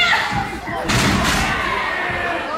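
A body slams hard onto a wrestling mat.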